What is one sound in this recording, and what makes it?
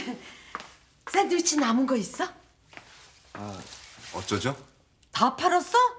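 An elderly woman talks, close by.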